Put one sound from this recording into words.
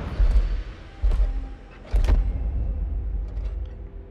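Heavy footsteps thud on the ground, deep and booming.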